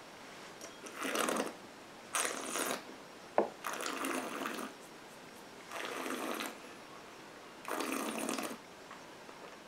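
A man breathes out loudly through pursed lips, again and again.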